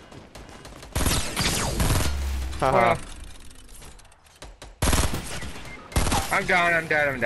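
A rifle fires a burst of gunshots.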